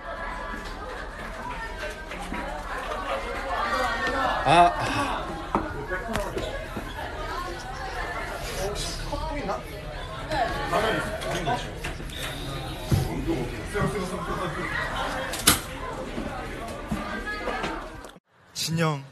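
A young man talks playfully and close up.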